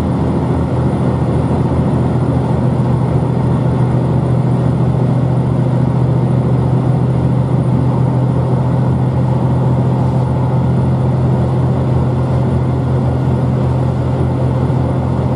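A train rumbles steadily with a low hum as it travels.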